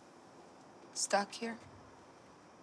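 A young woman speaks a few soft words, close by.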